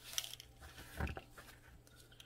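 A small plastic bottle taps lightly against a plastic mould.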